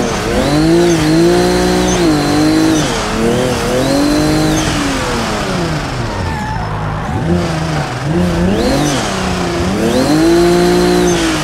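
A car engine revs hard, its pitch climbing and dropping with each gear change.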